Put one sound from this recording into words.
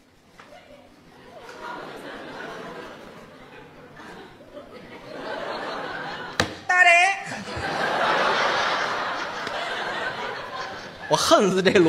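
An audience laughs and applauds in a large hall.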